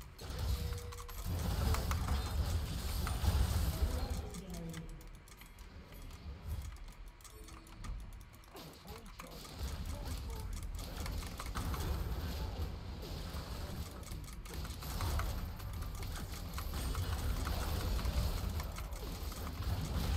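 Game combat effects clash and whoosh in a fight.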